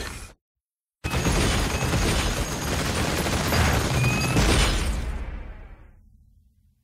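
Gunfire blasts in rapid bursts.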